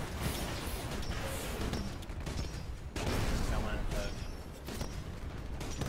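A heavy cannon fires in rapid bursts.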